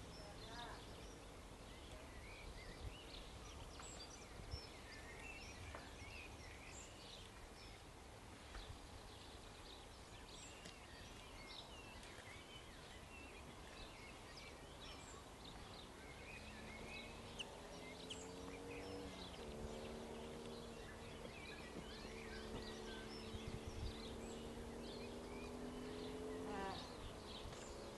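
A steam locomotive chugs steadily as it approaches.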